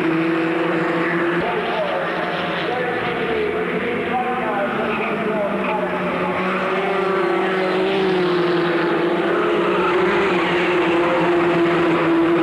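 Racing car engines whine loudly at high revs, shifting in pitch as the cars pass.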